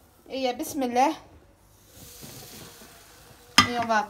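A waffle iron lid thumps shut.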